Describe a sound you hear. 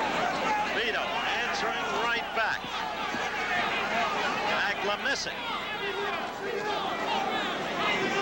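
A large crowd cheers and shouts loudly throughout.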